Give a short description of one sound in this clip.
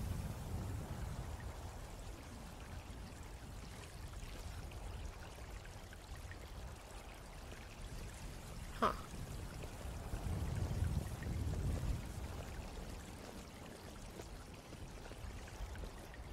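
Water flows and splashes steadily in a channel.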